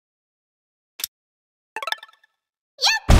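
Sword slashes strike in quick, sharp bursts.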